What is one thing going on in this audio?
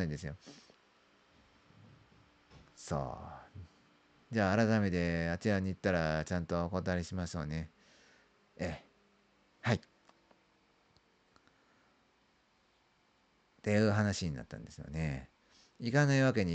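A young man speaks calmly and close by, in bursts with pauses.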